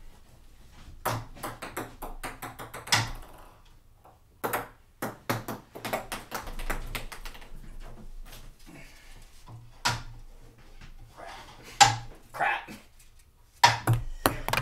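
A ping pong ball bounces on a table.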